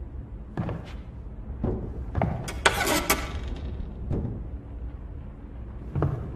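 A wooden door creaks and thuds as it is pushed open.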